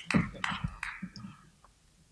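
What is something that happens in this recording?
A woman speaks calmly, a little way off.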